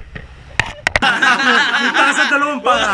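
A group of men laugh and shout with excitement.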